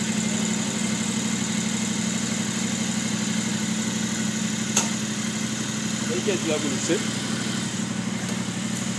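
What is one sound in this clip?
A motorcycle engine idles steadily nearby.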